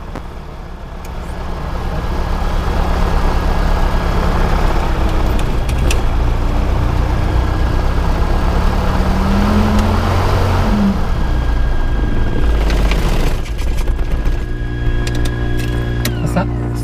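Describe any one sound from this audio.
A small plane's engine runs with a steady loud drone.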